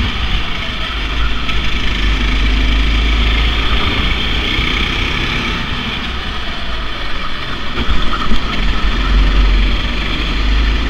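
A go-kart engine buzzes loudly close by.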